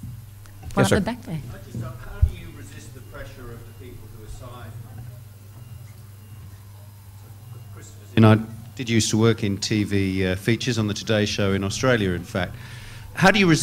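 An older man speaks with animation into a microphone, in a large, echoing room.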